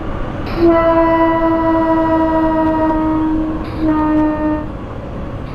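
A train rumbles across a bridge.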